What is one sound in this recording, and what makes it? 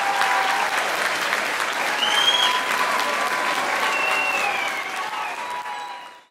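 A large crowd claps and cheers loudly.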